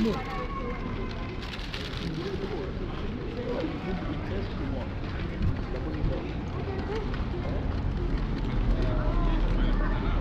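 Voices of passers-by murmur in a busy outdoor street.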